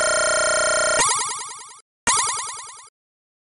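Electronic chimes ring out as the tally ends.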